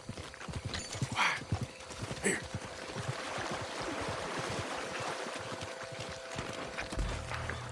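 Footsteps squelch through wet mud.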